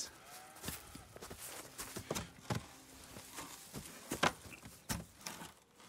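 Wooden posts thud and knock as men lift them.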